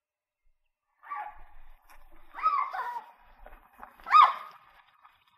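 Footsteps run across dirt ground.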